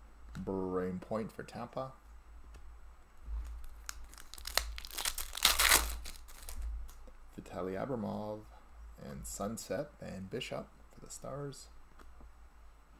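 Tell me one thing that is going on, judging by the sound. Trading cards rustle and slide against each other as hands handle them.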